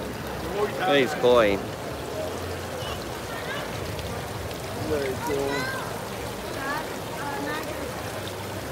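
Water splashes and trickles steadily into a pond.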